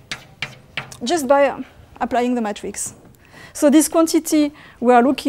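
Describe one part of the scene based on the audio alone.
A woman speaks calmly, as if lecturing.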